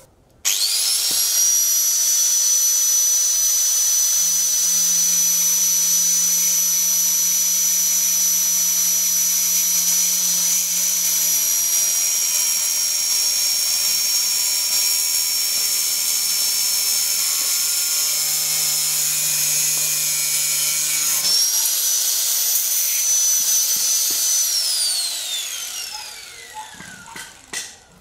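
An angle grinder whines at high speed, then winds down.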